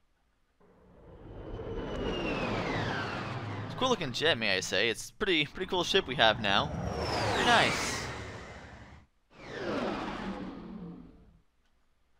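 A spaceship's rocket engines roar as it whooshes past.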